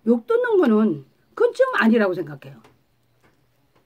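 A middle-aged woman sings in a clear, high voice close by.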